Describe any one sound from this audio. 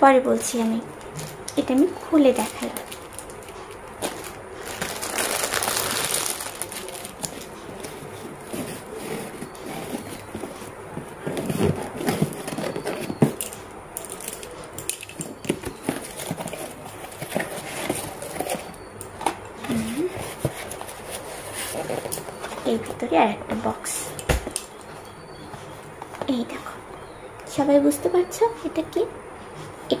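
Paper rustles as a box is handled.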